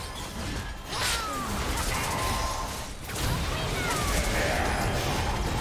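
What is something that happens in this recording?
Sharp magic impacts crackle and flare.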